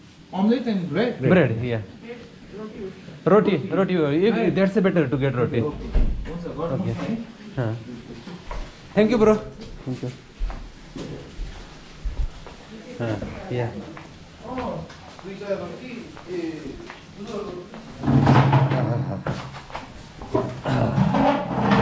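A man talks close by through a face mask, speaking casually.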